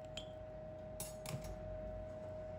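Water splashes in a metal pot.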